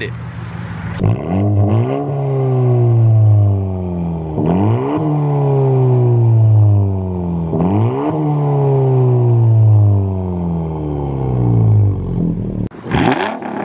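A car engine revs up and down repeatedly through a loud exhaust.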